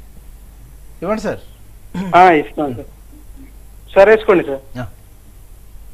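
A middle-aged man speaks in short bursts through a microphone.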